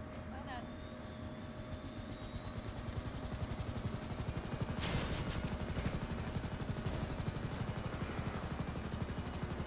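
A helicopter's rotor thumps rapidly as it starts up and flies.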